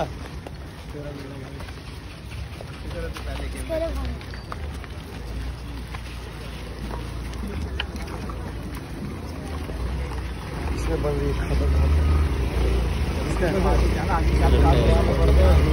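A large crowd of men chatters all around outdoors.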